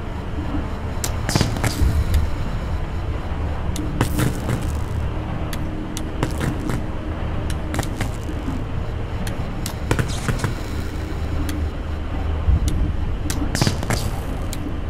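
Metal valves clunk and click as they turn.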